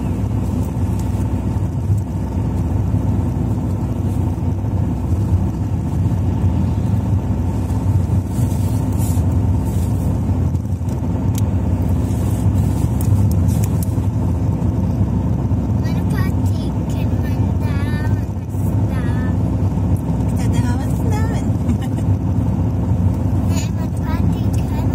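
A vehicle's engine drones steadily with a low rumble while driving.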